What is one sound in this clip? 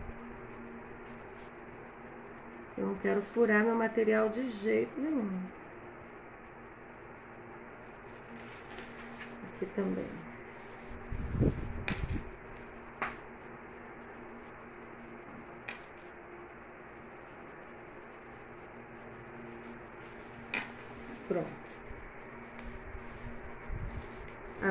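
Fabric rustles and rubs as it is handled.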